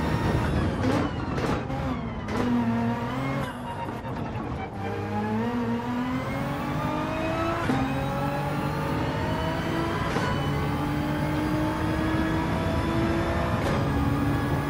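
Gears shift with sharp cracks as the engine revs climb.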